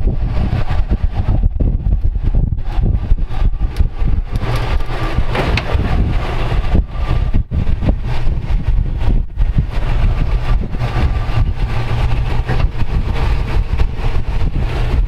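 An engine idles and revs low as an off-road vehicle crawls over rock.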